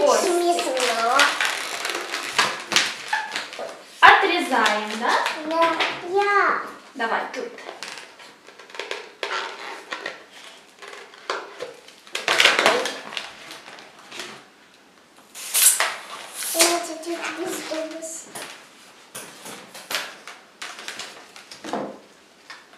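Rubber balloons squeak and rub as they are twisted.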